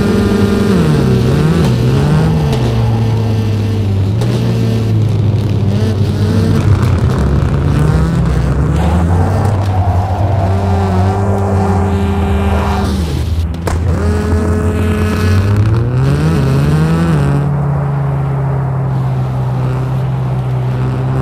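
A racing car engine roars and revs up and down through gear changes.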